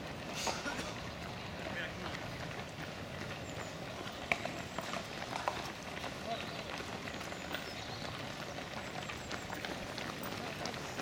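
Many running shoes patter on the pavement outdoors.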